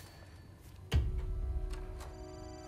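A door shuts with a thump.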